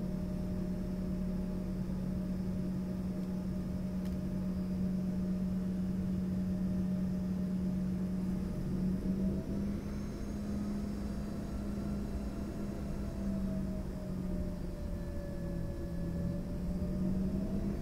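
An aircraft engine hums and drones steadily.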